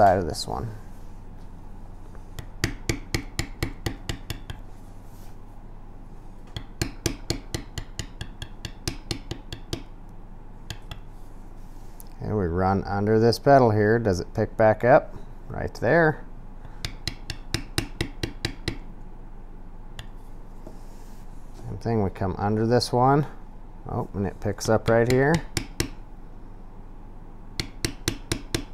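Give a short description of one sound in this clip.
A mallet taps a metal stamping tool into leather in quick bursts of sharp knocks.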